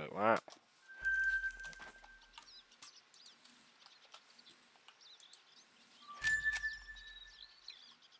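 A soft electronic chime rings twice.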